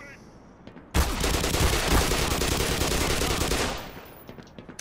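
A rapid burst of gunfire rattles loudly.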